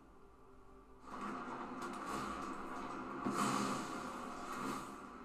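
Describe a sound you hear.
A man talks calmly into a microphone.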